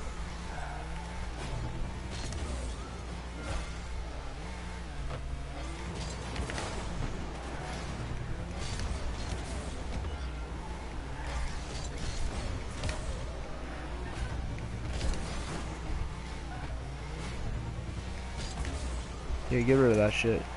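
Car engines hum and boost with a whooshing roar.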